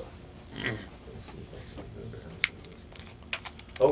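A plastic bottle crinkles in a man's hand.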